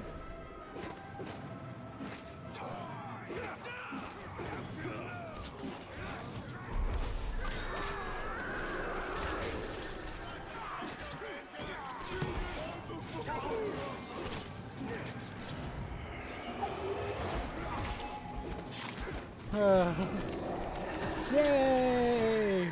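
Swords clash and strike again and again in a fierce fight.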